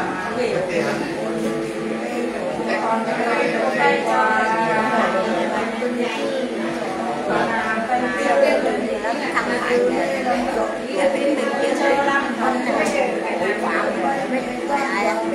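A two-stringed fiddle is bowed in a steady drone.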